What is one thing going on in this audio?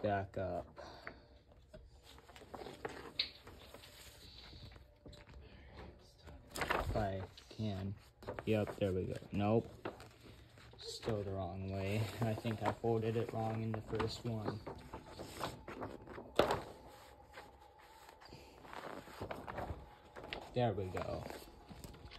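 A large sheet of paper rustles and crinkles as it is unfolded and folded.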